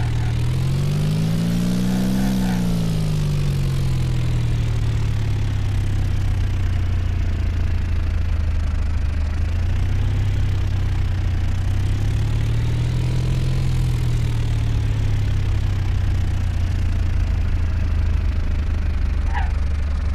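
An aircraft engine drones throughout, its pitch slowly rising and falling.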